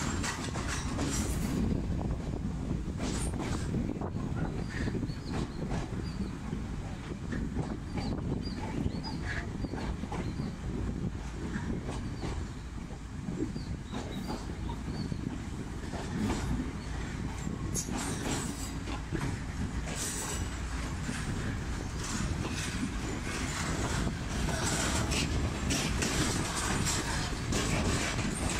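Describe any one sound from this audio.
Train wheels clack over rail joints and points.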